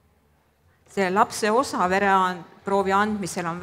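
A woman speaks clearly through a microphone.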